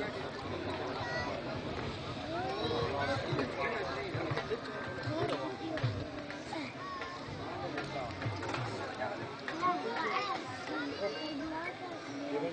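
A crowd of men chatters and talks over one another outdoors.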